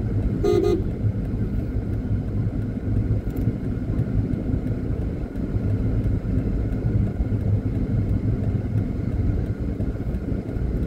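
Tyres roll over asphalt.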